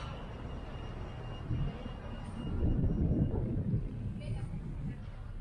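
People chatter in a low murmur nearby.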